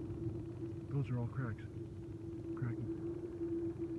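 Thin ice twangs with quick, falling, echoing zings.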